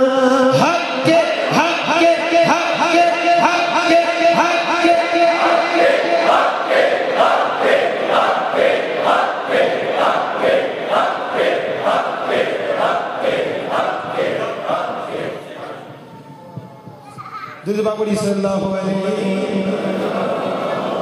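A man chants loudly and rhythmically through a microphone and loudspeakers, echoing in a large hall.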